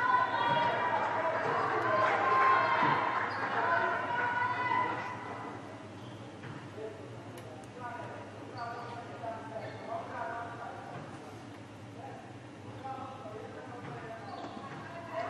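Young women players call out to each other in a large echoing hall.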